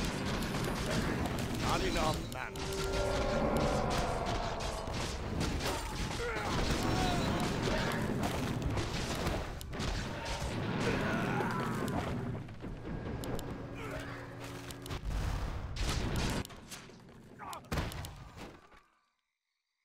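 Game battle effects clash and zap.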